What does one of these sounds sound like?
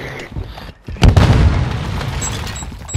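A rifle fires several shots.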